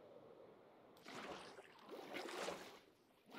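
Water splashes as it is poured out.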